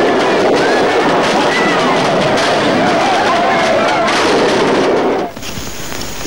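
Fireworks crackle and pop overhead.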